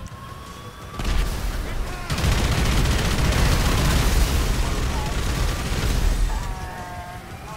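A machine gun fires in a rapid roar.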